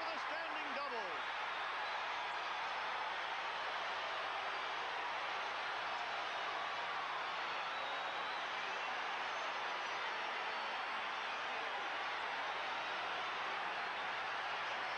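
A large crowd cheers loudly and steadily in an open stadium.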